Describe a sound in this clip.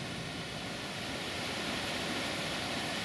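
A river flows and gurgles softly.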